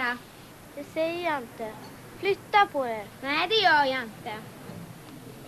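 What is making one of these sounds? A young girl speaks sharply and with emotion, close by.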